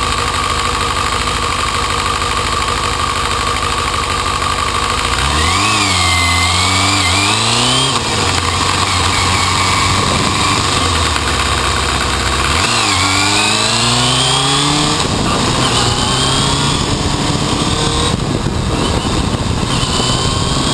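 A motorcycle engine rumbles close by and revs up and down as it rides.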